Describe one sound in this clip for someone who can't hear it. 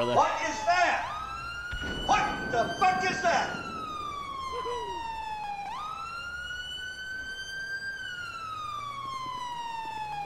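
A siren wails steadily, rising and falling slowly.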